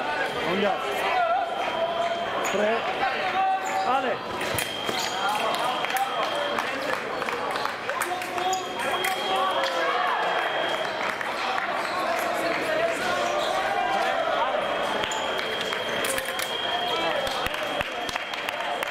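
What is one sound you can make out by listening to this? Fencers' shoes squeak and stamp on the floor.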